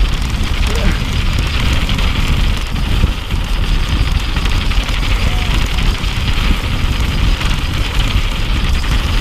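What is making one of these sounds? Bicycle tyres roll and crunch over rough rock and gravel.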